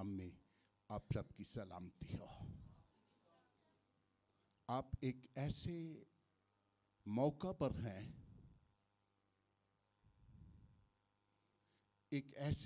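An older man preaches with animation through a microphone, in bursts with pauses.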